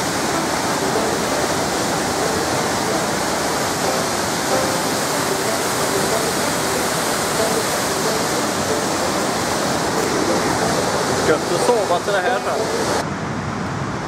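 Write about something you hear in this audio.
A rushing river and waterfall roar loudly and steadily.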